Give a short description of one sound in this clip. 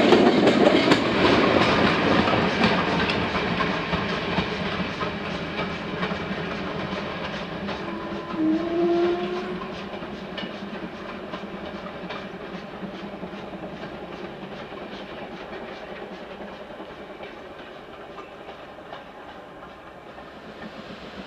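A train rumbles along the rails and slowly fades into the distance.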